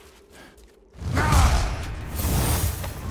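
A brief fight breaks out with loud blows and scuffling.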